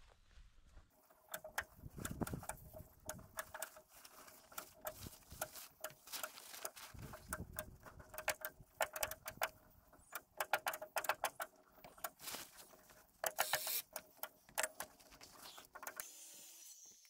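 A stiff plastic sheet crinkles and crackles as it is handled.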